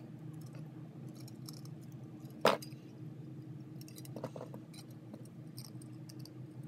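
Small metal tools clink and tap on a hard surface.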